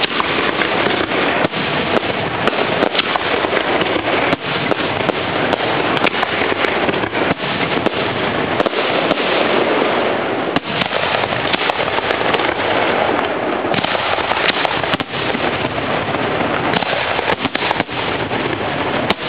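Fireworks bang and boom overhead, one after another.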